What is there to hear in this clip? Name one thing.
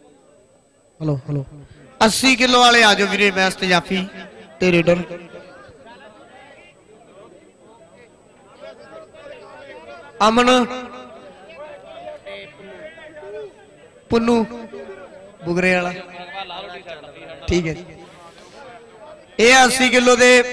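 A man announces loudly over a loudspeaker.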